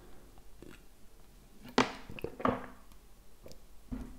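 A man gulps water from a plastic bottle.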